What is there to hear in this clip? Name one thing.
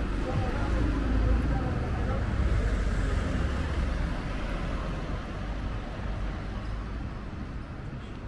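A car drives slowly past on the street.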